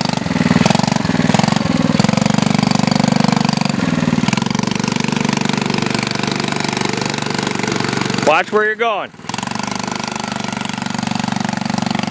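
A small quad bike engine putters and revs close by.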